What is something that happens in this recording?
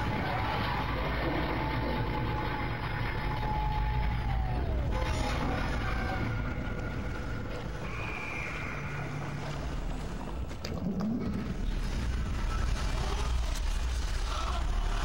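A deep machine hum drones steadily.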